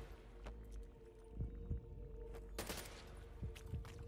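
A gun is reloaded with a metallic click.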